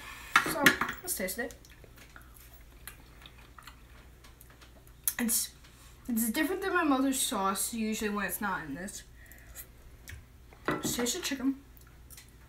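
A fork clinks on a plate.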